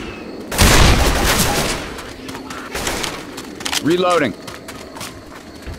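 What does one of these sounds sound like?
A pistol fires loud, sharp shots with a short echo.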